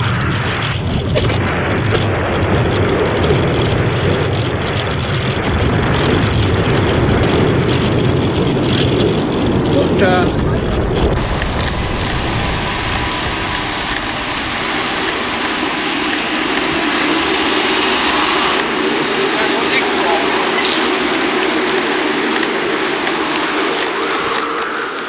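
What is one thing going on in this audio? Wind rushes and rumbles loudly against the microphone outdoors.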